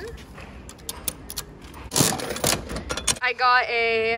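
A coin-operated machine's metal crank turns with a series of clicks and rattles.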